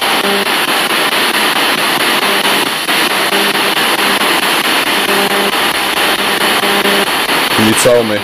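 A radio receiver gives off short, low beeps at regular intervals.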